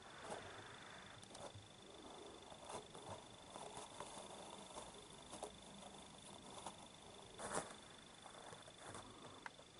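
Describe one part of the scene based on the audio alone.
A kitten rustles and crinkles a paper bag as it plays.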